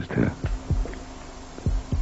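A middle-aged woman speaks quietly nearby.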